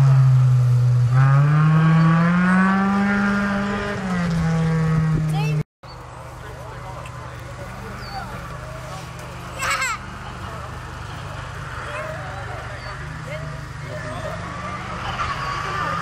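A rally car engine roars loudly, its pitch rising and falling as the car speeds past.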